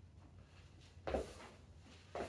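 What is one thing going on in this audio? Feet thud on the floor as a man lands from a hop.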